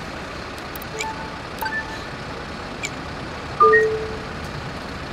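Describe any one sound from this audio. Short electronic chimes beep a few times.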